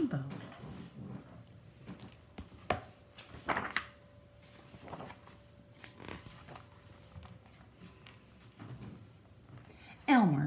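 A book's pages rustle as they turn.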